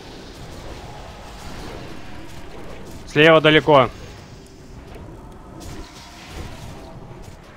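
Magic spells crackle and whoosh in a battle.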